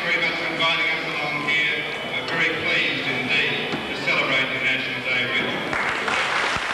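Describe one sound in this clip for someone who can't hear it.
A man speaks calmly into a microphone in a hall with some echo.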